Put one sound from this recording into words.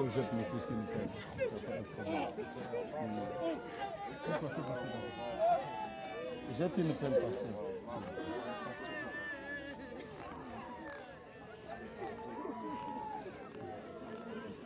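A crowd of men and women talk over one another nearby, outdoors.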